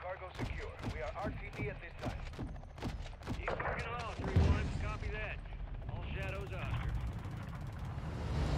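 Explosions boom and gunfire rattles.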